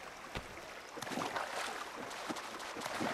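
Water splashes as a figure wades through shallows.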